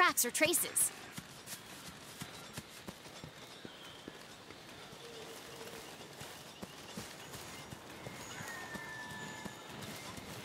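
Footsteps crunch softly over grass and dirt.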